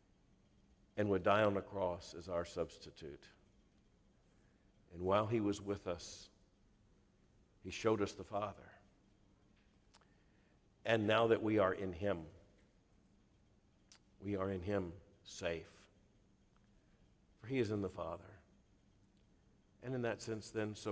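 A middle-aged man speaks calmly into a microphone, in phrases with pauses between them.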